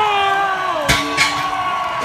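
A heavy bag thuds onto the ground.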